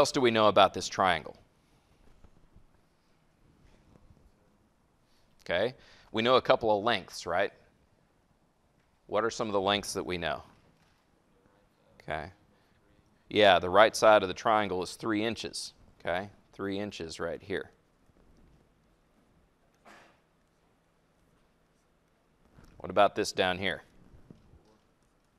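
A man lectures calmly through a microphone, in short bursts with pauses.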